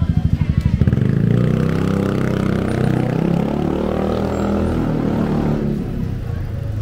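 A motor scooter engine rumbles close by and passes.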